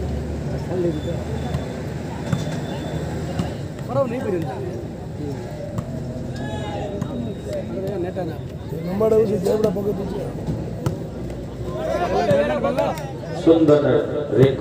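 A ball is struck with a thud during play.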